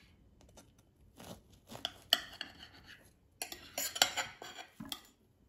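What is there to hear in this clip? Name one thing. A knife cuts through a soft cake on a plate.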